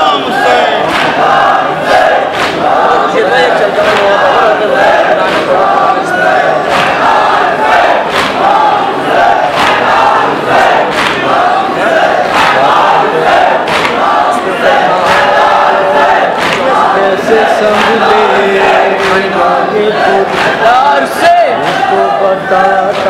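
A large crowd beats their chests in a steady rhythm.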